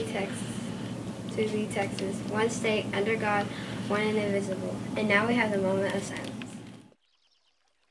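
A young girl recites steadily and clearly.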